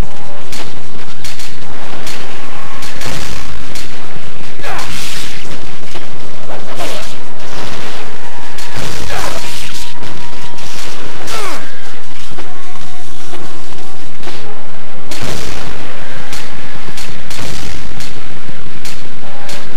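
Swords swish and clang in rapid strikes.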